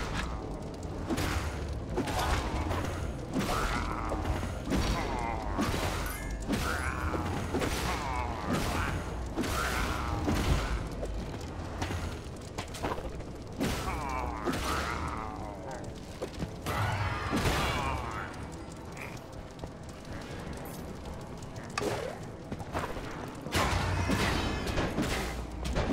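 Sword strikes and hits clash in a video game.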